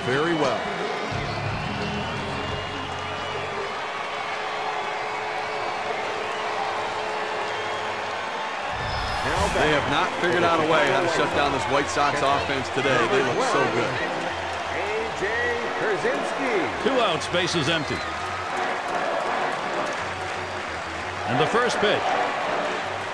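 A large crowd of spectators murmurs and cheers steadily in a big open stadium.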